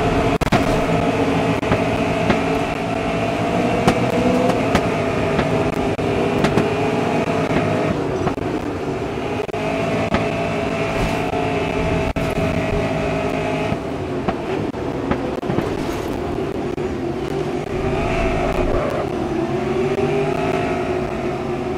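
A racing car engine roars at high revs, shifting gears and slowing down.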